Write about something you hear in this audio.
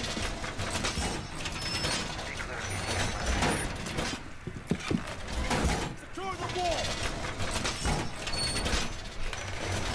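Wooden boards are knocked and hammered into place.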